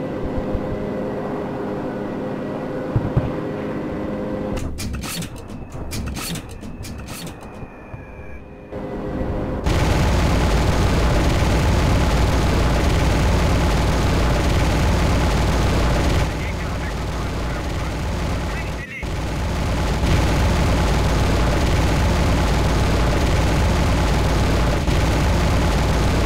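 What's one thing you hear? A propeller engine drones steadily with a loud rushing of wind.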